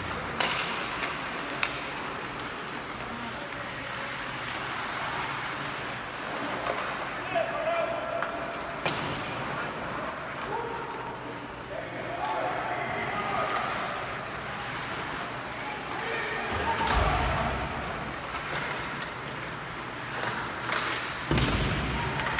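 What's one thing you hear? Hockey sticks click sharply against a puck.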